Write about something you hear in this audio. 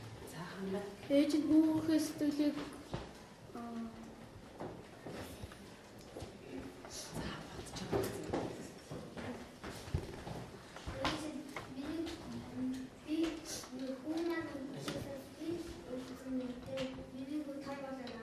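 Children murmur and chatter quietly nearby.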